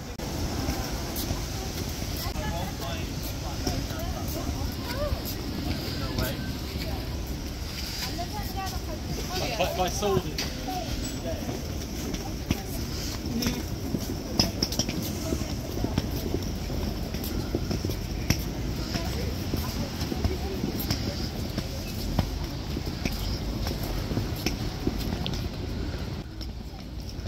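Footsteps tap on paving stones outdoors.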